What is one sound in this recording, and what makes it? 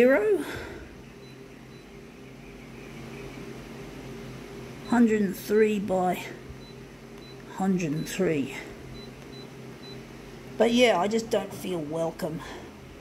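A copier hums steadily.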